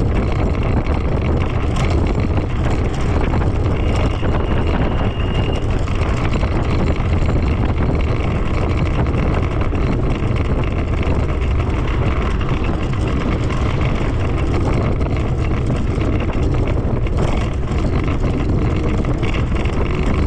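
A scooter engine hums steadily.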